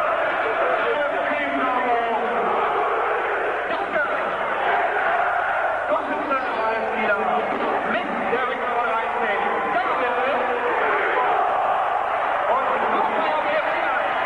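Men nearby shout and sing along close by.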